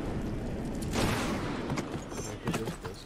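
An explosion booms with a hiss.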